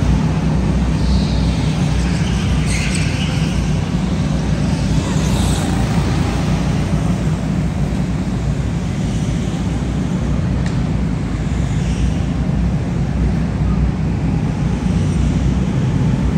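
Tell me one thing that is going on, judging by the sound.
Go-kart engines buzz and whine around an indoor track.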